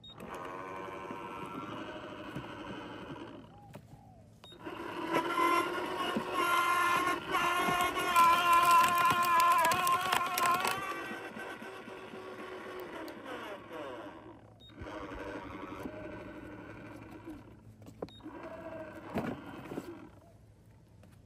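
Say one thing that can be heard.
A wood chipper motor whines and grinds a thick branch.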